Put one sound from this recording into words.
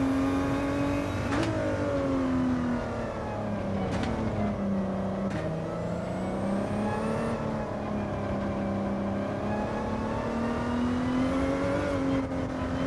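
A racing car engine roars, its pitch rising and dropping as it shifts gears.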